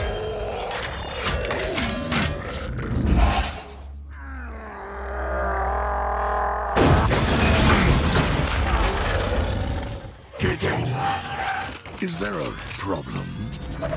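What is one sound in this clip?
Heavy metal parts clank and grind as a giant robot moves.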